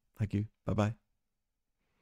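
A man speaks briefly and calmly into a microphone, close by.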